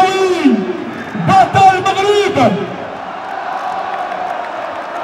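Men nearby clap their hands.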